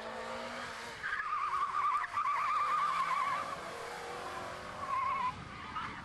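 Tyres squeal through a corner.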